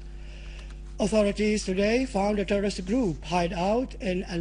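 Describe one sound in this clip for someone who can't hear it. A middle-aged man speaks steadily into a microphone, reading out the news.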